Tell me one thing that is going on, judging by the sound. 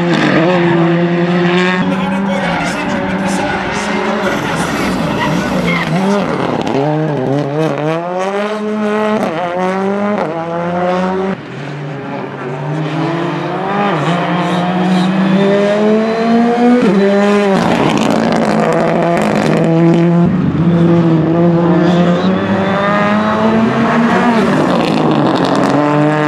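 A rally car engine revs hard and roars through gear changes.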